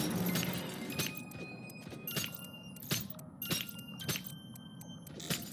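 A countdown device beeps with short electronic tones.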